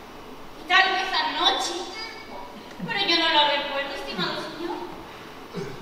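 A young woman speaks dramatically from a stage in a large echoing hall.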